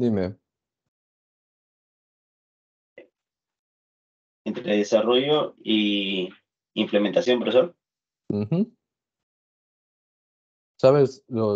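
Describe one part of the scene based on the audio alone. A young man speaks calmly over an online call, in short bursts with pauses.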